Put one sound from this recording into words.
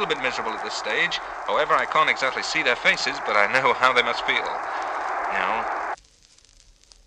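Singing and music play from a vinyl record, then stop.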